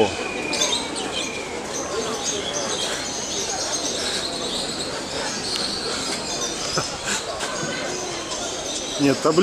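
People talk quietly in the distance.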